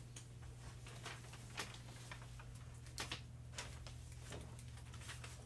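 Papers rustle and tap on a table.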